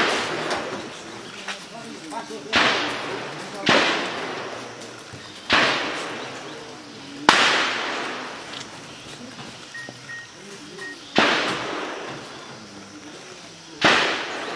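Men talk quietly in the distance.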